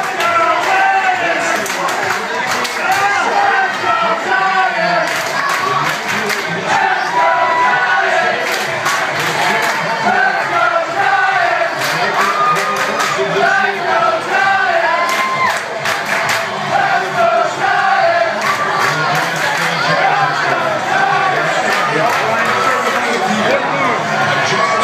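A crowd of people cheers and shouts loudly.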